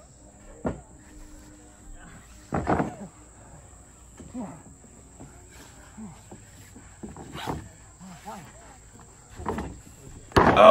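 Bodies thump and thud on a wrestling ring mat.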